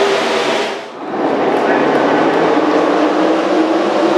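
A crowd of spectators murmurs and cheers in a large open stand.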